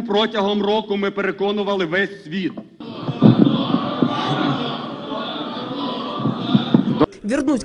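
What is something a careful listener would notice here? A man speaks firmly into a microphone in a large hall.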